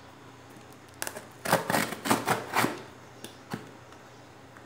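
A utility knife slices through packing tape and cardboard.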